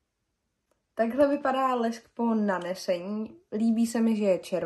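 A young woman talks softly and close up.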